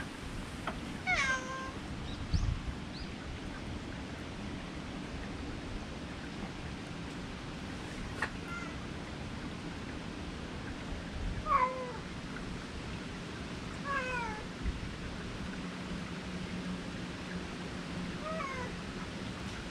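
A cat meows nearby several times.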